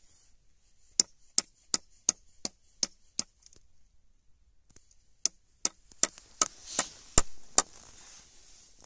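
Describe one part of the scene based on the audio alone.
A knife taps and scrapes against a wooden pole.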